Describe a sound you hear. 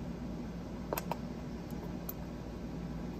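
Small metal knife parts click against each other.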